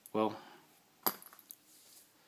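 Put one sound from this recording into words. A plastic pen taps softly as it is set down on a surface.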